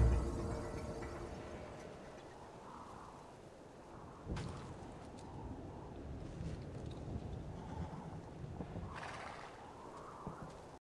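Footsteps tread on stone paving at a walking pace.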